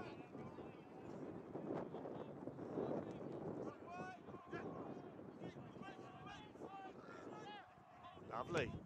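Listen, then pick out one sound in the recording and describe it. Young men shout to one another in the open air.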